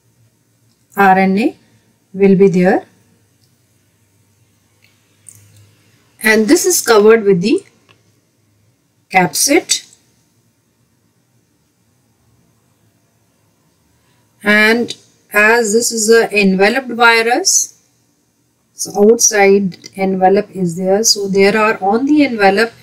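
A woman speaks calmly and clearly into a close microphone, with pauses.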